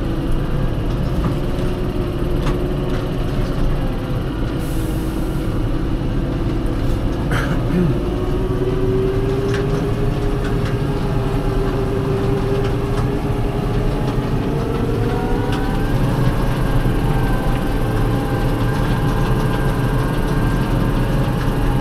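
A tractor engine drones steadily from inside the cab, its pitch slowly rising.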